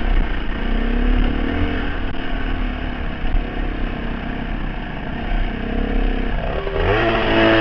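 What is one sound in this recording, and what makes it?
A dirt bike engine roars up close, revving up and down.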